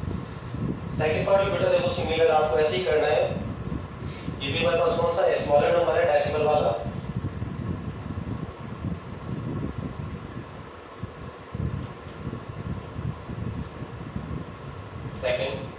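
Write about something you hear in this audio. A man speaks calmly through a close headset microphone.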